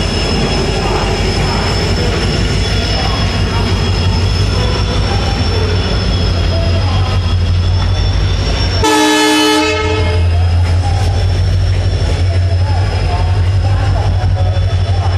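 A diesel locomotive rumbles steadily close by.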